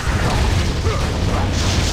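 Fire bursts with a loud whoosh.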